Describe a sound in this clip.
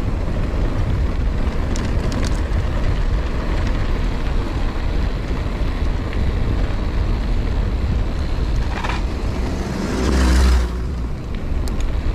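Bicycle tyres roll and rattle over a rough concrete path.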